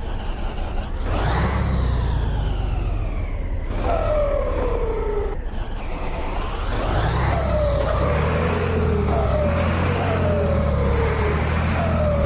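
A truck engine revs up and climbs through the gears several times.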